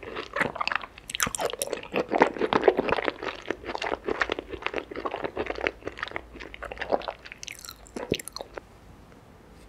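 A young woman chews and smacks her lips loudly, close to a microphone.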